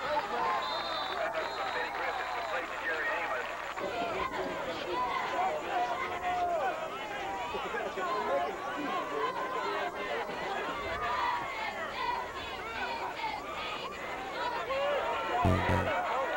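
A large crowd of young men chatters and shouts outdoors.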